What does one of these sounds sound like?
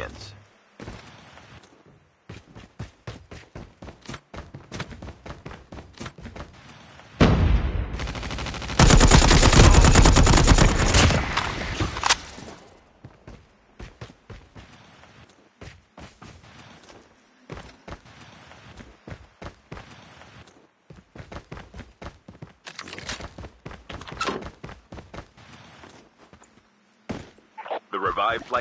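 Footsteps patter quickly over the ground.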